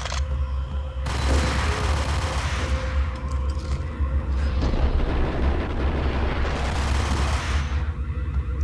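Pistols fire a rapid burst of gunshots.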